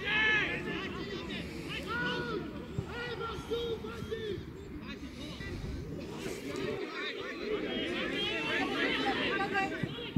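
Spectators chatter and call out from the sidelines.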